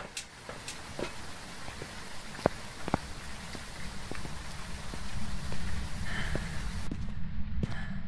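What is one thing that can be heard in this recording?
Footsteps tap steadily on a hard path.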